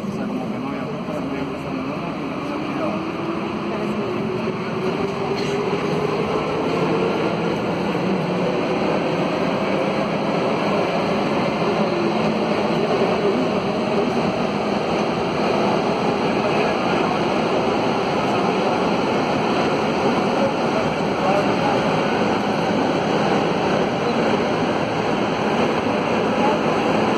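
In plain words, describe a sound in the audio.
A subway train rumbles and roars as it speeds up through a tunnel.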